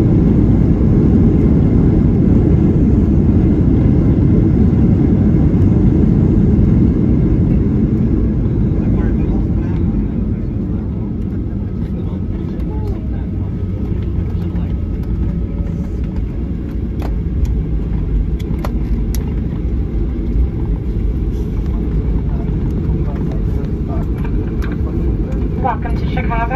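A jet engine roars steadily, heard from inside an airliner's cabin.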